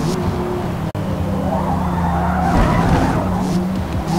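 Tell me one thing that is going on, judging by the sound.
Tyres screech as a car slides through a corner.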